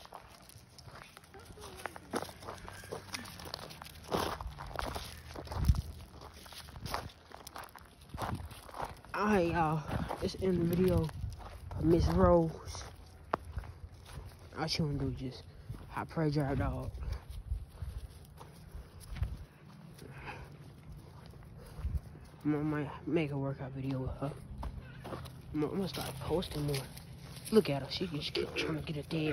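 Footsteps crunch on gravel and dry pine needles.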